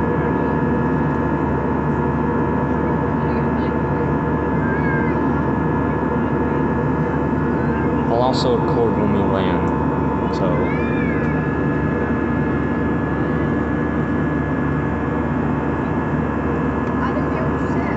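A jet airliner's engines roar steadily as it climbs after takeoff, heard from inside the cabin.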